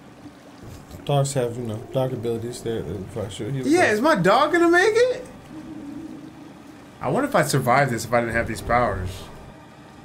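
A second young man answers with excitement, close to a microphone.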